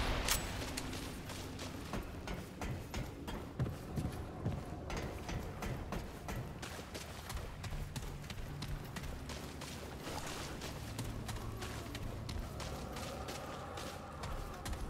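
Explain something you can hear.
Footsteps crunch through dry grass and over wooden boards.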